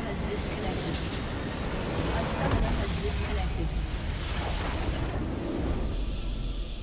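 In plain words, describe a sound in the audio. A large structure explodes with a deep crashing rumble.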